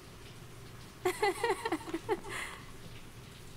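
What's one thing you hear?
A young woman speaks briefly and sharply, close by.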